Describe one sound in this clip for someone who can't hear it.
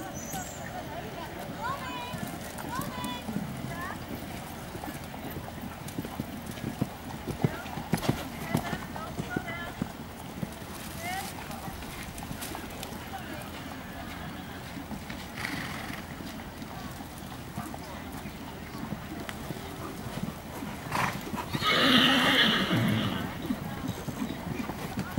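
Horses' hooves thud softly on sand.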